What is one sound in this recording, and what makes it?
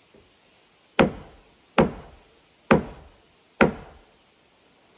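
A hammer strikes wood four times with sharp, ringing knocks.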